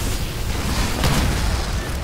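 Gunfire rattles loudly.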